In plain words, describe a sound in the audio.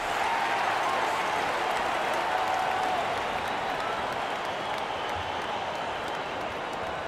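A large crowd cheers and murmurs steadily in a big echoing arena.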